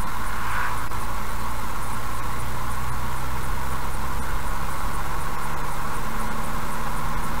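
Tyres roll with a steady rush on the road.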